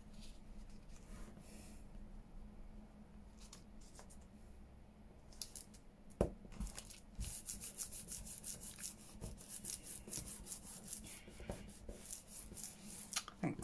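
Fingers rub and smooth paper against a surface.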